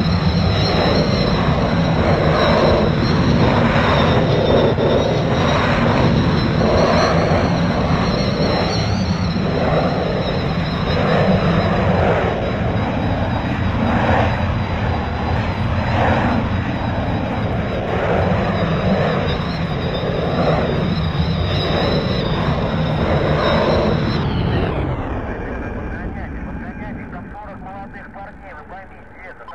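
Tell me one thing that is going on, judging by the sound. A jet airliner's engines roar steadily overhead, then fade away.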